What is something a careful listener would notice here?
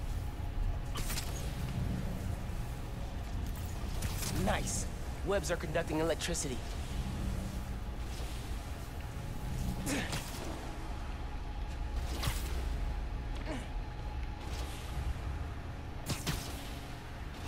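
Webs shoot out with sharp, quick whooshes, several times.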